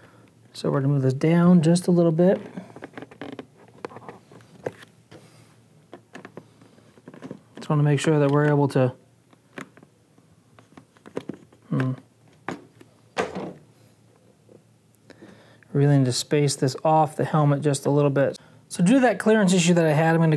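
Plastic parts click and scrape together.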